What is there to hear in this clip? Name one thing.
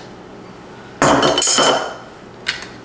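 A spoon scrapes inside a glass jar.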